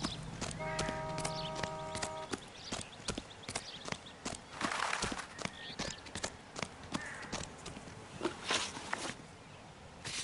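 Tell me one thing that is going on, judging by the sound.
Footsteps crunch on gravel at a steady jog.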